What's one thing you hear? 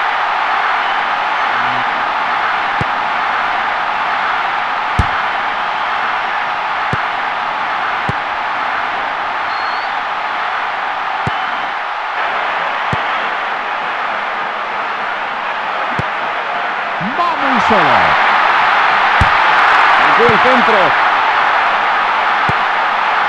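A crowd roars steadily in a large stadium and swells louder near the end.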